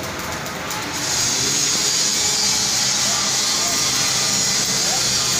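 An electric welding arc crackles and hisses.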